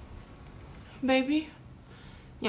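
A woman speaks briefly in a raised voice.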